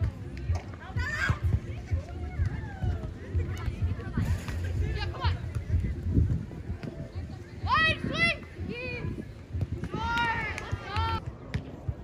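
Young women shout and call out during play.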